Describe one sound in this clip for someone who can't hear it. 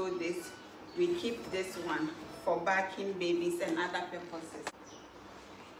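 A young woman speaks brightly and close by.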